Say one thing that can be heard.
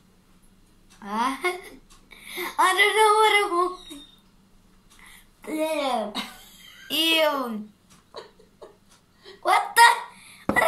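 A young boy laughs and speaks excitedly close by.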